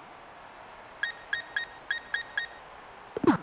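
Short electronic beeps tick quickly as a menu scrolls.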